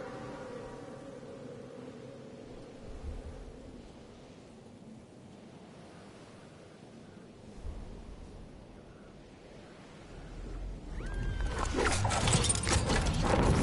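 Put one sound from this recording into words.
Wind rushes past during a fast fall through the air.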